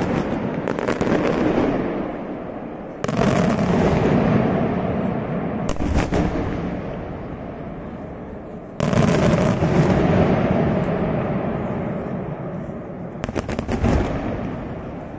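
Firework bombs crackle in rapid bursts.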